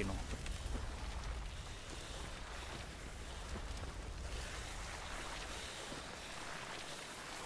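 Footsteps tread over soft, wet ground.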